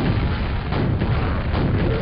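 An explosion bursts nearby.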